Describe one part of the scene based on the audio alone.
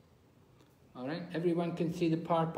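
An elderly man speaks close to the microphone, with emphasis.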